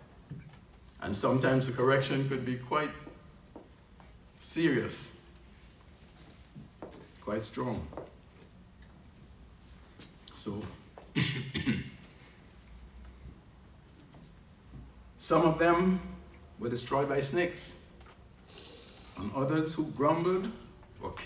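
An elderly man speaks slowly and calmly into a microphone, with long pauses, in a room with a slight echo.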